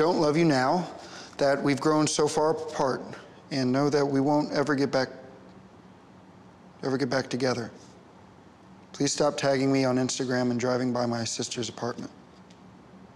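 A man reads aloud close by, with animation.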